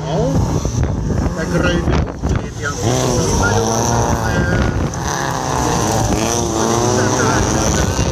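Rally car engines roar and rev in the distance.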